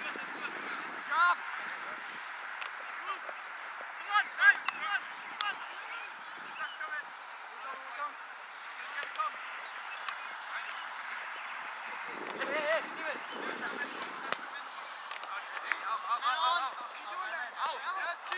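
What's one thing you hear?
Young men shout to each other across an open field.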